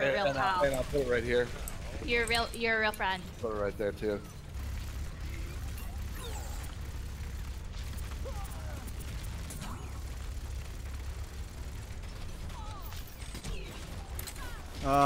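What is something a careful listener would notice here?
A game gun fires in rapid bursts.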